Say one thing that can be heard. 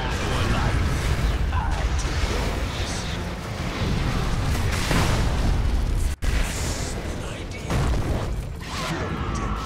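Magic spells burst and weapons clash in a loud, busy battle.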